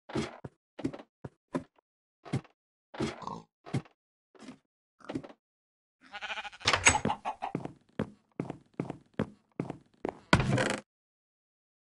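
Footsteps clatter on a wooden ladder and floor.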